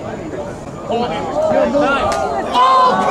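A crowd cheers loudly outdoors.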